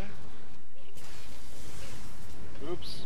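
Lightning cracks sharply.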